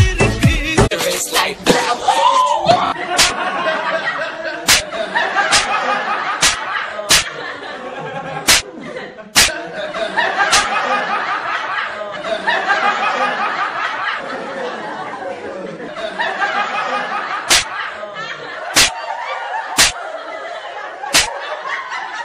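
Hands slap together sharply, again and again.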